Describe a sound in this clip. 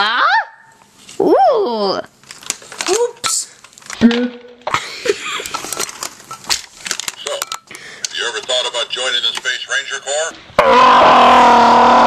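Plastic toys knock and rattle as they are handled.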